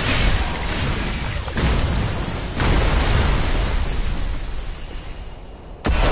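A sword slashes and strikes a large beast with heavy impacts.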